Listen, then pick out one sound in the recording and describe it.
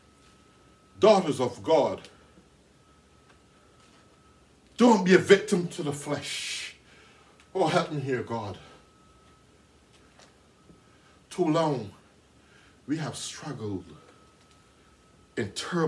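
A middle-aged man preaches loudly and with passion in short bursts, with pauses between.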